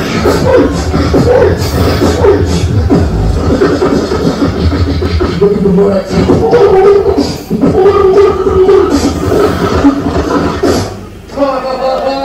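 A young man beatboxes loudly through a microphone with heavy bass beats.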